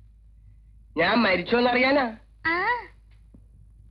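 A young child speaks briefly.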